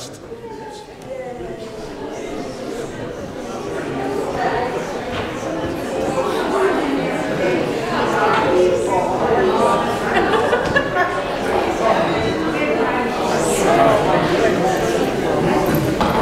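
Many elderly men and women chat and greet one another warmly, their voices echoing through a large hall.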